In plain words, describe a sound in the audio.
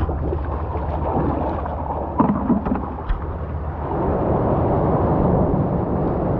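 Small waves wash gently over rocks.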